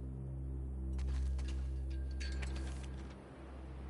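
A sheet of paper rustles as it is picked up.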